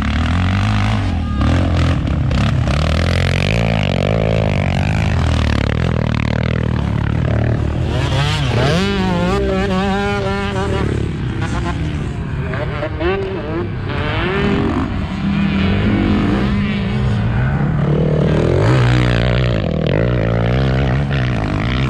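Motorbike engines rev and roar.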